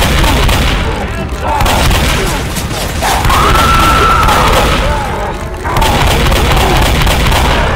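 Shotgun blasts boom in quick succession.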